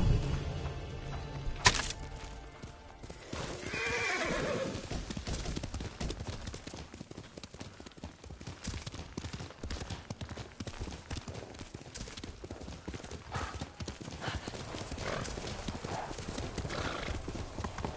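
A horse gallops, hooves thudding on soft ground.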